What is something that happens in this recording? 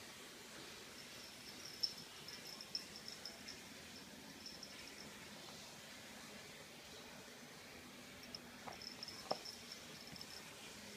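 A cat's claws tick and scratch softly on the floor.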